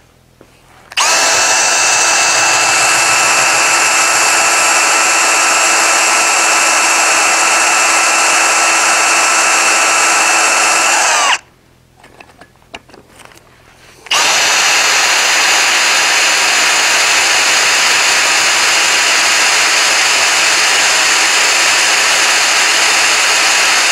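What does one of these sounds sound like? A cordless drill whirs loudly at high speed, stopping briefly and starting again.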